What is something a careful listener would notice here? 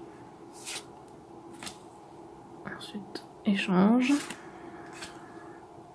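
Playing cards slide and rustle against each other.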